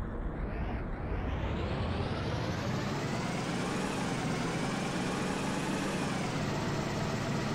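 A truck engine revs up and then settles.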